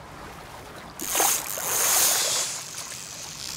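A fishing line whizzes out as a rod casts.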